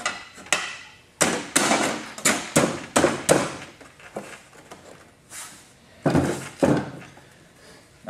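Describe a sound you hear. A metal box knocks and scrapes against a wooden bench.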